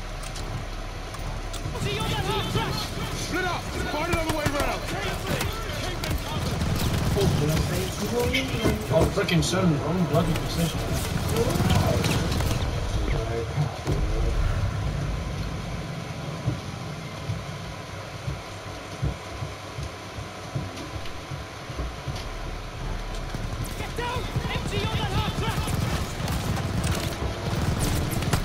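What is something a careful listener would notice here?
Gunshots crack in rapid bursts close by.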